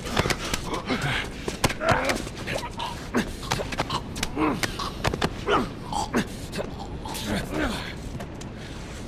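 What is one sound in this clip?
A man grunts and groans in a struggle.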